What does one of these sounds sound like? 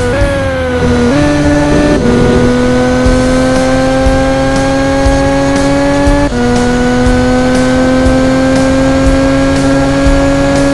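A racing car engine whines at high revs, dropping briefly at each gear change and then climbing again.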